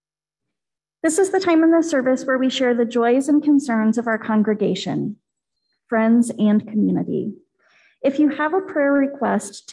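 A woman speaks calmly into a microphone, heard through an online call.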